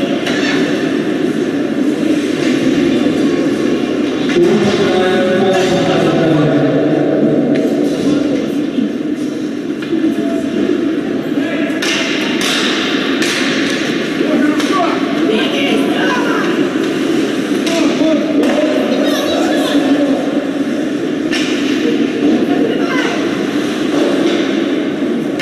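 Skates scrape and hiss on ice.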